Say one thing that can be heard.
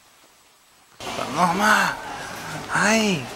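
A baby babbles close by.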